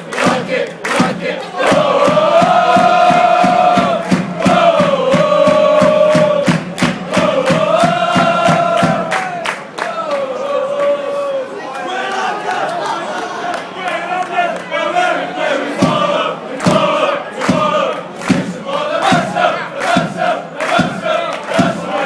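A crowd of football fans chants in unison outdoors in an open stadium.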